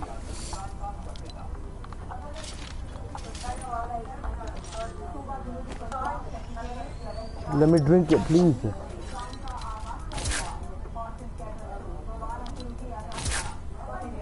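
Short game menu clicks sound as items are selected.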